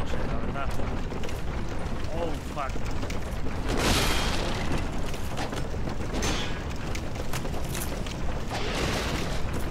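Metal weapons clash and clang.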